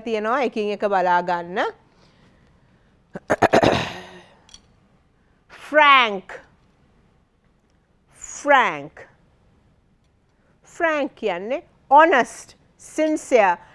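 A woman speaks clearly and slowly into a microphone, with pauses.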